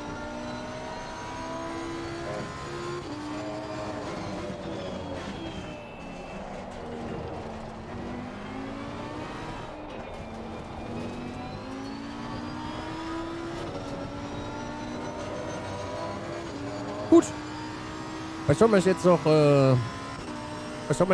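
A racing car engine revs up and down through the gears.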